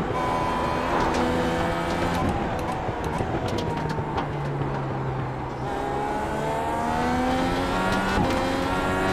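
Gear shifts click sharply.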